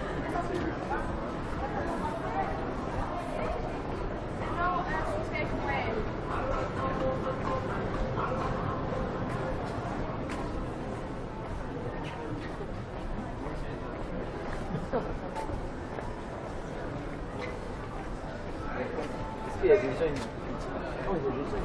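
Men and women chat in passing nearby, outdoors.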